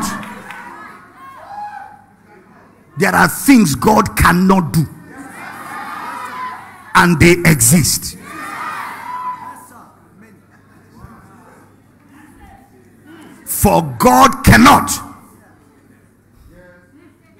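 A man preaches loudly and with animation through a microphone in a large echoing hall.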